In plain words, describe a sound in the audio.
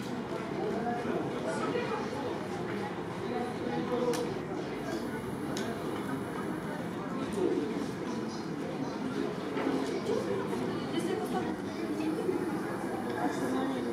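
Spectators chatter nearby in a large open stadium.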